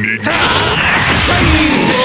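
An energy blast whooshes and crackles loudly.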